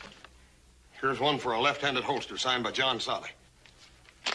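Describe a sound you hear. A man speaks loudly and with force, close by.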